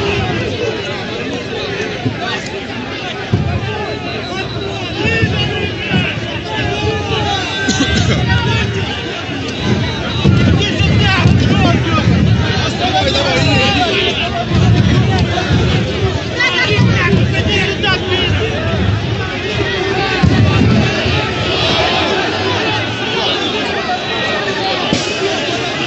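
A crowd of men and women shout and talk loudly nearby outdoors.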